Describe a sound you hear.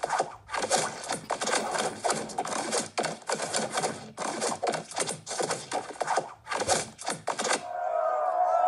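Rapid wet splats and squelches burst one after another.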